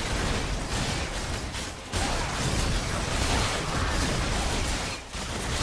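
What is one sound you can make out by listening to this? Spell effects crackle and clash as game characters fight a large monster.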